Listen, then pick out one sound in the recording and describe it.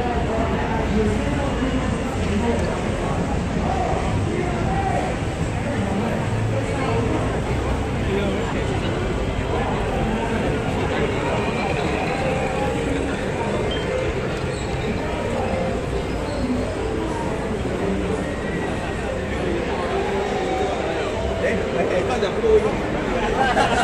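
A crowd of people chatter in a large echoing hall.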